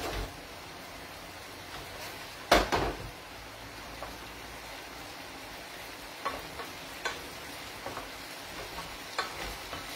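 Food sizzles quietly in a frying pan.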